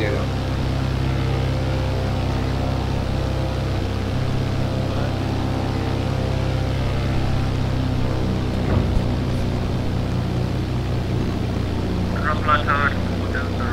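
A small plane's engine drones steadily.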